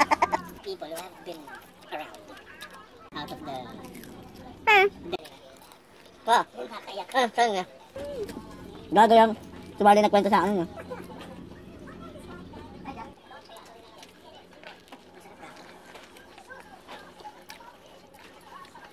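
A young woman chews and munches food noisily.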